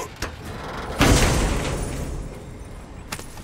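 A heavy chest lid is forced open with a rumbling burst.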